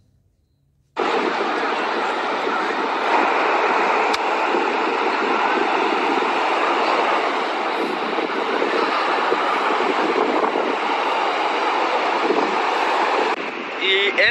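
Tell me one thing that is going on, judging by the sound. Strong wind blows across a microphone outdoors.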